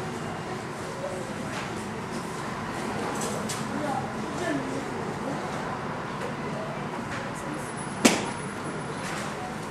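A Boeing 737 taxis past with its jet engines whining.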